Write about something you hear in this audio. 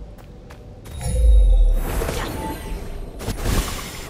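A magical whoosh sweeps past with a soft shimmer.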